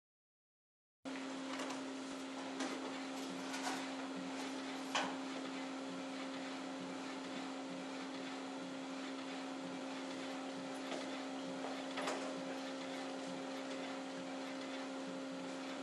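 A printer hums steadily as it runs.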